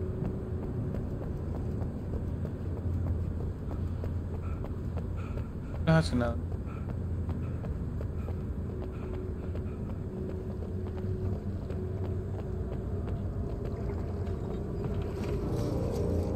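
Footsteps run on hard pavement.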